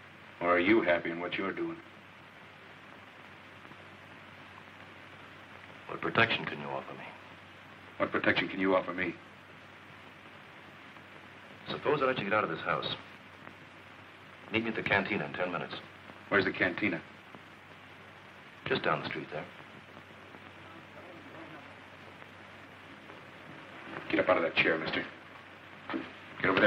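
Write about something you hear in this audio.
A man speaks in a low, tense voice, close by.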